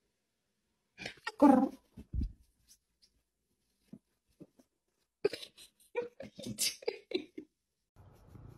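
A cat hisses and yowls angrily.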